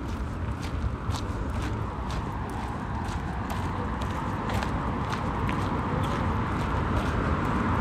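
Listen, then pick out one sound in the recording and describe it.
Cars drive by on a road nearby.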